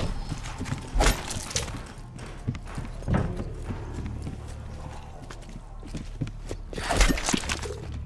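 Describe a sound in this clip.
A knife strikes with a heavy thud.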